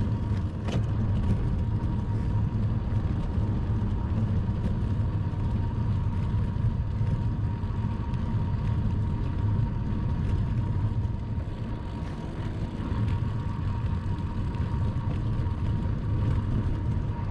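Bicycle tyres hum on smooth pavement.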